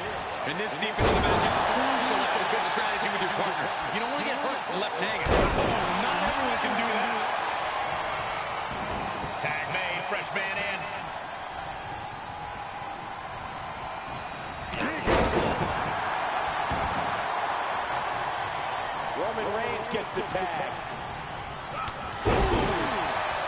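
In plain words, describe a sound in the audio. Heavy thuds of a body slamming onto a wrestling mat.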